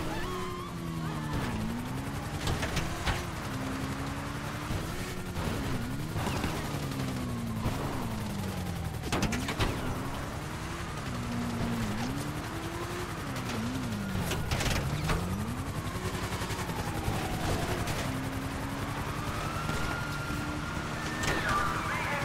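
A motorcycle engine revs up and down throughout.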